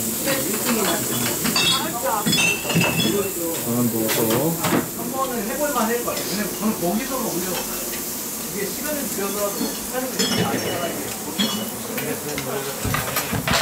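Young women and men chat and laugh nearby.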